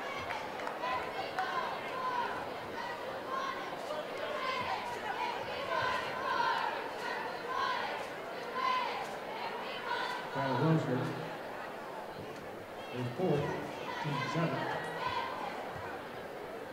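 A large crowd cheers and murmurs in an echoing gym.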